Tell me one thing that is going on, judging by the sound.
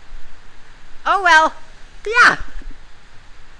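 A teenage boy sings out two loud, wavering notes close by.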